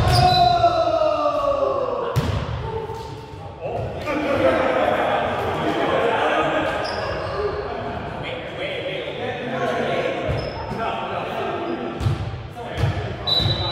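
A volleyball is hit with sharp slaps in an echoing hall.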